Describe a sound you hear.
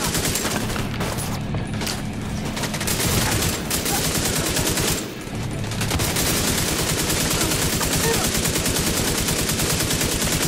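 Rapid automatic gunfire rattles.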